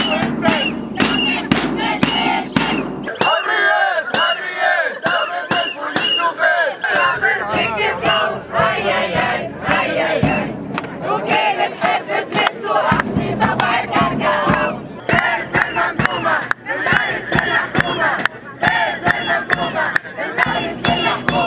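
A crowd of protesters chants loudly outdoors.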